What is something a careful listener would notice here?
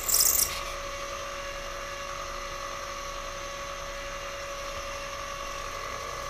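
A milling machine spindle hums steadily.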